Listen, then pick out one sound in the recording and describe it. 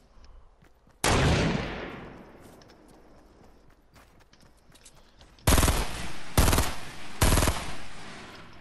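A gun fires loud shots that echo away.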